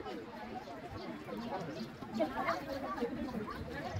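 Children talk nearby.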